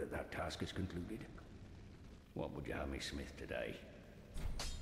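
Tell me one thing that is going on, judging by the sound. An elderly man's voice speaks calmly in a game.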